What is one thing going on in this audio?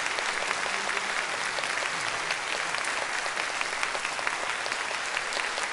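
An audience claps and applauds steadily in a large hall.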